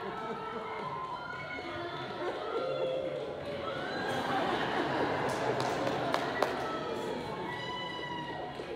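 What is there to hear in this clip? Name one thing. A group of men and women cheer and shout excitedly through a loudspeaker.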